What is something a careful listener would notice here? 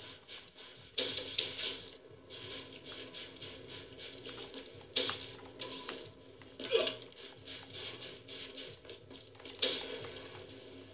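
Loud explosions boom from a video game.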